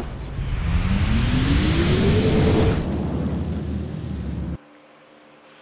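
A giant leaps through the air with a deep, rising whoosh that suddenly cuts off.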